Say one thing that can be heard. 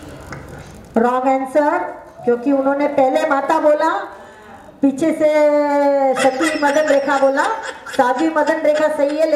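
A woman sings loudly through a microphone and loudspeakers.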